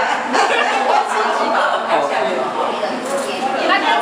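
An elderly woman laughs loudly close by.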